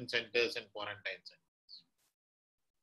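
An elderly man speaks calmly through an online call.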